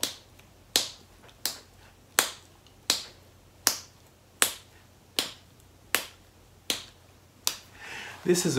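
A man snaps his fingers in a steady beat.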